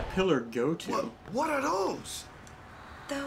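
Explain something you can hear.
A young man asks a startled question.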